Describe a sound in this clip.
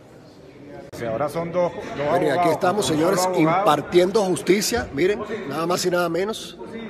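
An older man talks close to a phone, speaking calmly.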